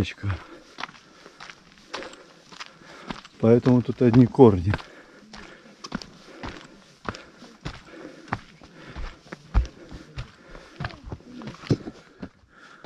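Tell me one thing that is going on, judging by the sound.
Footsteps crunch on a dirt path at a steady walking pace.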